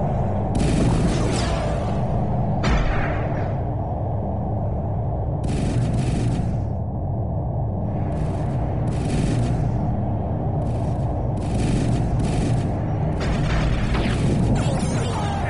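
Engines hum with a steady low rumble.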